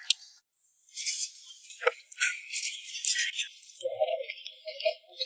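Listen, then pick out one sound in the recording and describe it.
A young woman slurps soup from a bowl.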